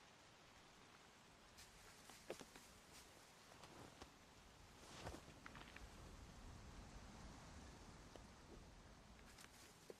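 Footsteps crunch softly on leafy forest ground.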